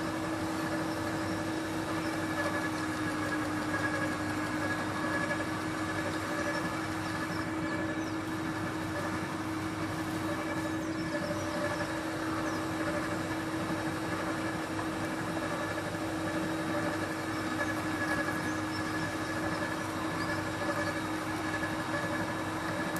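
A garden shredder motor hums and whines steadily.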